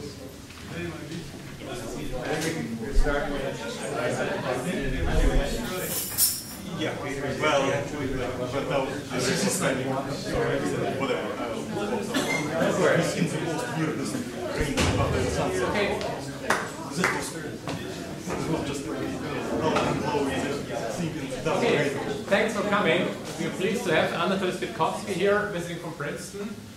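A man lectures steadily into a microphone.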